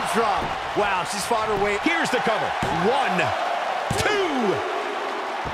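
A referee slaps the mat repeatedly during a count.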